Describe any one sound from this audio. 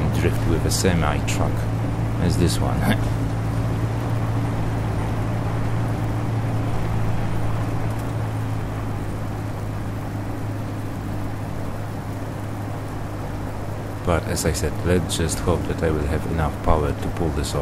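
Heavy wheels rumble over rough ground.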